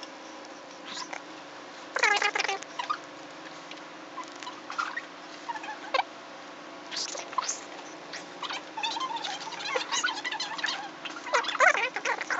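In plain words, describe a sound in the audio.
A marker squeaks across a whiteboard in short strokes.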